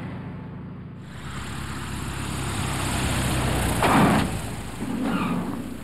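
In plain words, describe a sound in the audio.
A propeller whirs loudly up close.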